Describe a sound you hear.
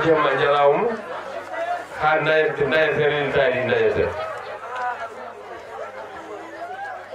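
An elderly man speaks loudly and with animation into a microphone, heard through loudspeakers.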